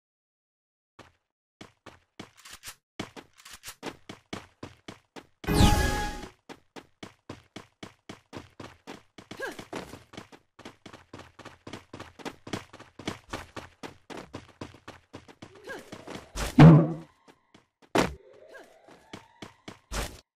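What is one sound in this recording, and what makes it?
Footsteps patter quickly and steadily.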